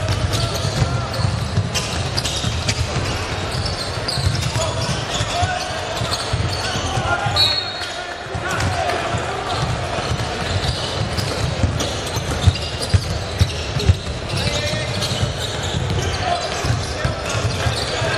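Basketballs bounce on a hard wooden floor in a large echoing hall.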